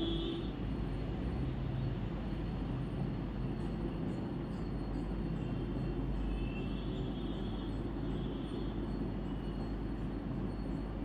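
A cloth rubs softly against a wall.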